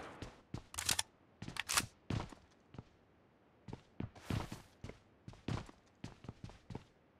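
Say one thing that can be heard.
Footsteps thud quickly across a floor.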